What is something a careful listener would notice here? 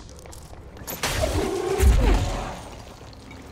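Debris and furniture crash and clatter loudly as they are flung about.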